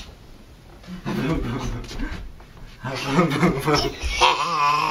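A man talks playfully close by.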